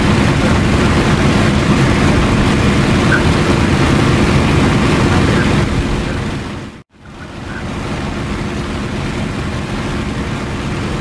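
A propeller aircraft engine drones loudly and steadily.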